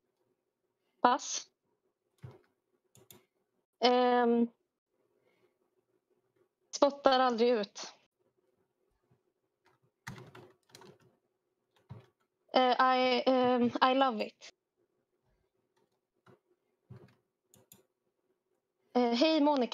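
A woman sings short bursts of melody over an online call, with pauses between.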